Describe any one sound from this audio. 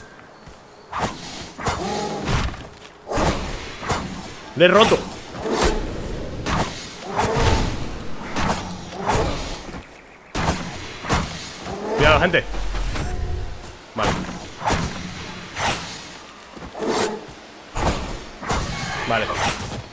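Swords clash and slash in quick, sharp hits.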